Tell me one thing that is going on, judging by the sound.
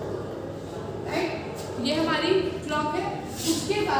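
A woman speaks clearly, close by.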